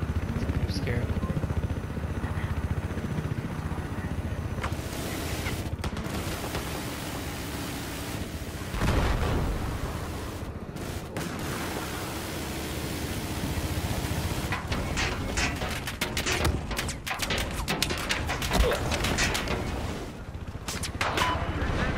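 A helicopter's rotor thumps steadily close by.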